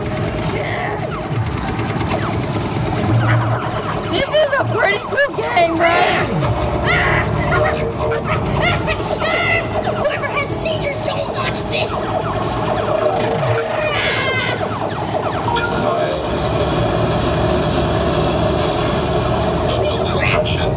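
A busy arcade rings with a steady mix of game noise.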